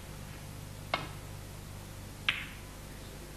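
Snooker balls click together on a shot.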